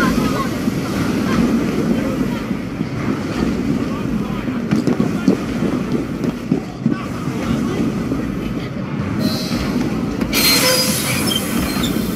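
Steam hisses from a valve.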